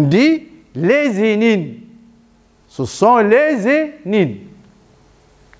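A man speaks calmly to an audience in an echoing room.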